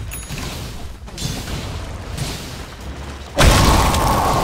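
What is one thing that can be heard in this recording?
Game combat effects clash and crackle.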